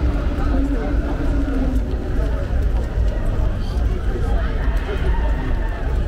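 Rain patters on the wet street and umbrellas.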